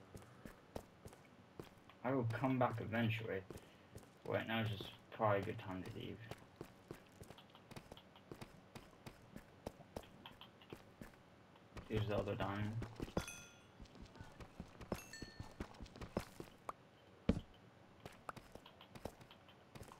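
A pickaxe taps and chips at stone blocks in quick knocks.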